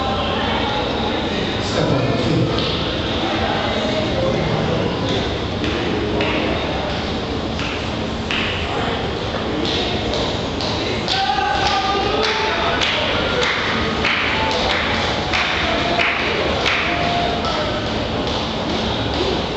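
A crowd claps hands in rhythm.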